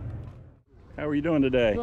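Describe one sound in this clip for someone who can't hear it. An elderly man speaks nearby.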